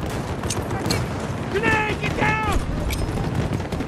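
An explosion booms and scatters debris.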